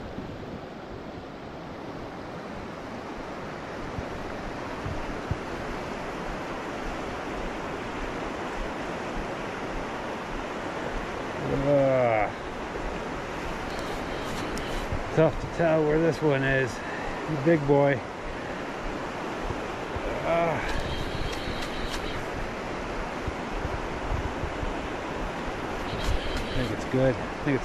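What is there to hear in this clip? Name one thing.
A river rushes and splashes steadily over rocks nearby.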